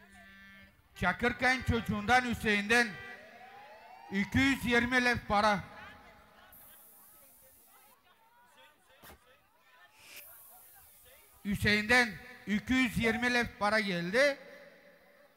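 A man speaks loudly and with animation through a microphone and loudspeakers, outdoors.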